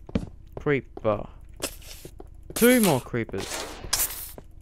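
A creature hisses up close.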